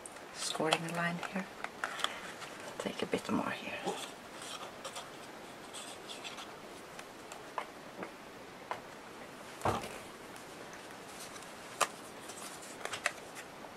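Paper rustles and scrapes under hands on a table.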